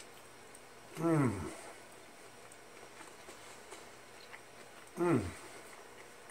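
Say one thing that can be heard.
A man hums with pleasure.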